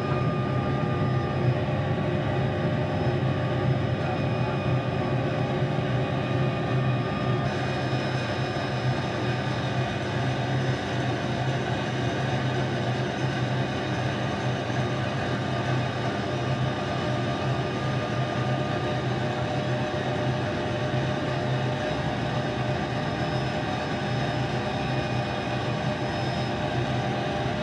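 A helicopter engine and rotor drone loudly and steadily, heard from inside the cabin.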